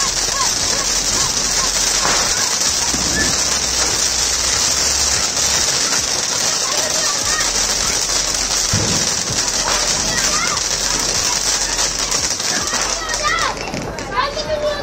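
Sparks crackle and pop from a firework fountain.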